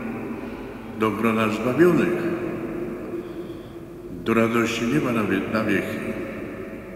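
An elderly man speaks calmly through a microphone, echoing in a large reverberant hall.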